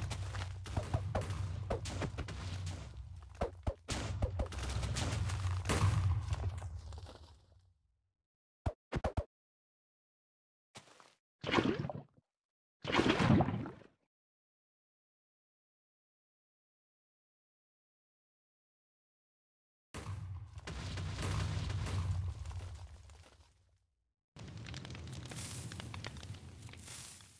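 Explosions boom and rumble in rapid succession.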